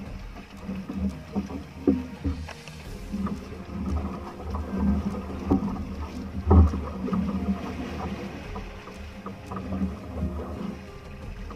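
Wood and rope knock and creak on a boat.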